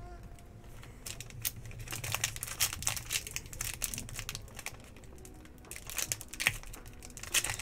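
A foil wrapper crinkles and tears as hands open a card pack.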